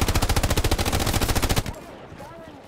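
A machine gun fires a rapid burst up close.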